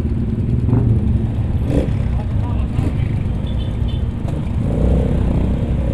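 Other motorcycle engines idle and putter nearby.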